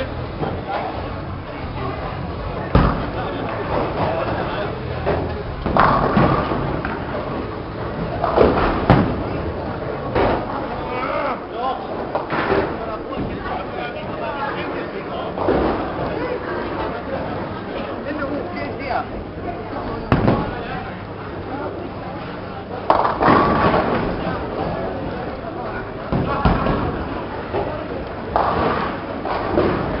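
A crowd chatters loudly in a large echoing hall.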